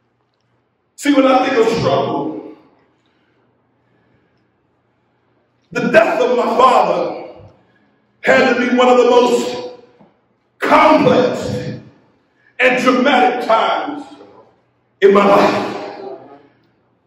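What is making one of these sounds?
A man speaks with animation into a microphone, in short emphatic phrases.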